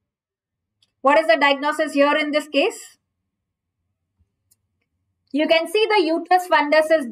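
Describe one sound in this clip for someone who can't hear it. A young woman speaks calmly into a close microphone, with pauses.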